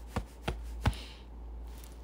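A hand taps against a phone.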